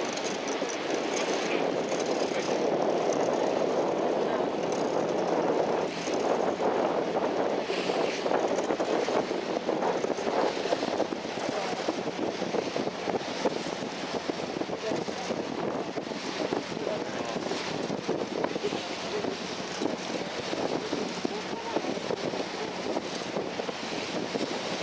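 A boat's engine drones steadily.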